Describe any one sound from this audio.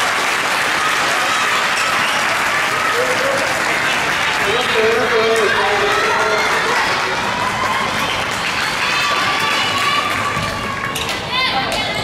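A crowd of young people cheers and shouts loudly in a large echoing hall.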